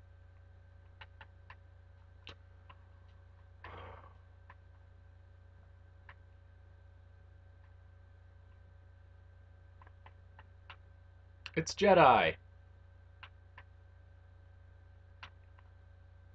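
Soft game clicks and taps sound now and then as blocks are placed.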